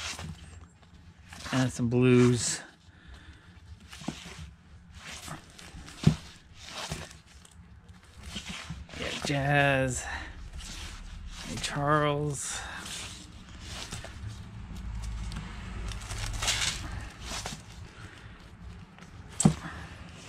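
Record sleeves rustle and knock against each other as they are flipped through.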